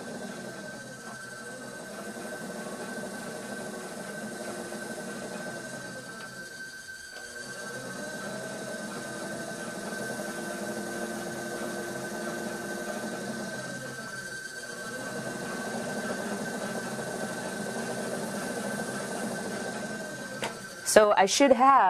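A trimming tool scrapes clay on a spinning wheel.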